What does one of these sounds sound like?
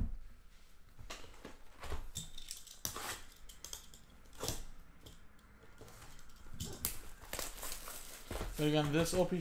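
Plastic wrap rustles and crinkles as it is cut and torn off a box.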